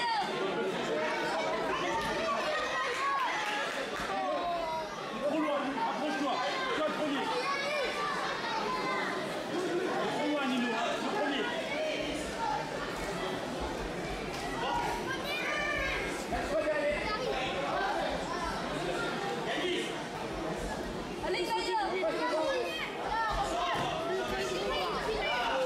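A crowd of children chatters and cheers loudly in an echoing hall.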